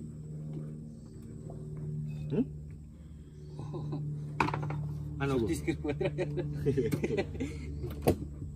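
A man yanks an outboard motor's starter cord, which rattles.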